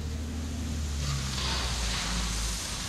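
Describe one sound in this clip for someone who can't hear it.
Gravel pours and rattles into a truck bed.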